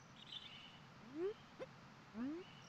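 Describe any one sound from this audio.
Short rising electronic blips play in quick bursts.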